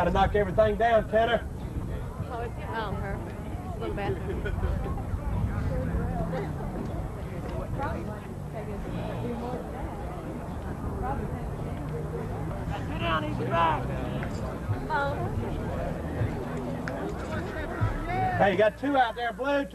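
Men talk quietly nearby, outdoors.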